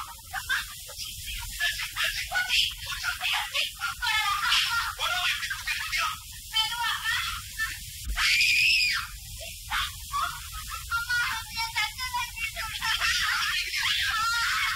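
A woman sings loudly with animation.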